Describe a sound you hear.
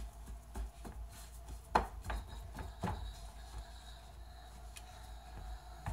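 Fingers press and pat soft dough in a metal pan with soft thuds.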